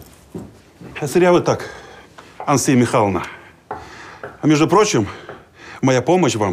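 A middle-aged man speaks firmly, close by.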